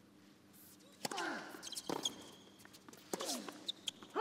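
A tennis ball is struck sharply back and forth with rackets.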